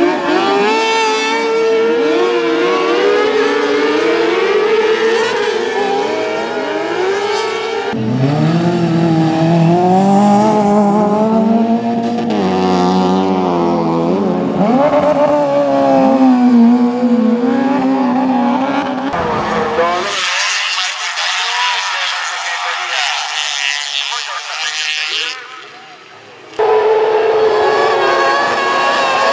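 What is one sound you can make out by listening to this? Racing car engines roar and rev loudly close by.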